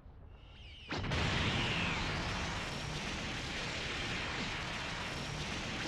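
An energy blast bursts out with a loud, roaring rush.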